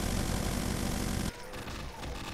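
A machine gun fires in a rapid stream of shots.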